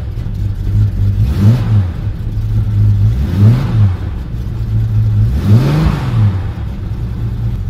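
A car engine revs up and drops back down several times.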